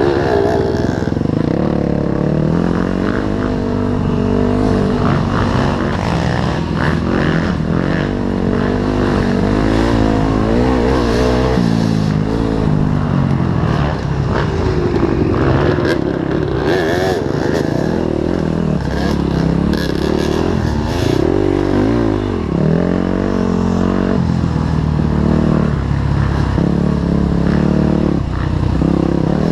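A dirt bike engine revs and roars up close, its pitch rising and falling.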